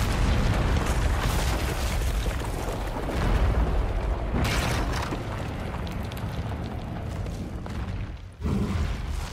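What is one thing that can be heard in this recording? Heavy stone crumbles and rumbles as it collapses.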